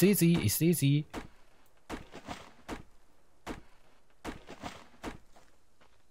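An axe chops into wood with dull knocks.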